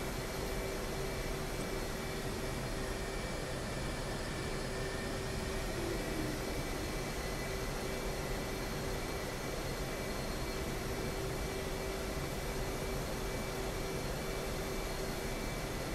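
A jet engine whines and roars steadily at idle.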